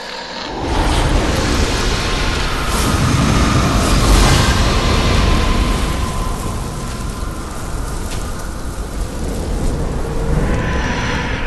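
A huge creature growls and rumbles deeply.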